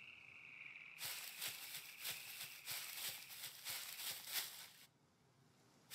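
Footsteps rustle quickly through grass and undergrowth.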